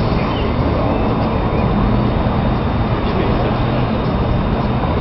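Distant city traffic hums far below.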